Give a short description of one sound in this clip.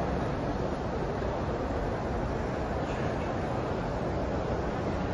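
A large crowd murmurs in a wide echoing space.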